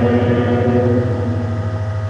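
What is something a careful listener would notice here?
A man chants prayer into a microphone.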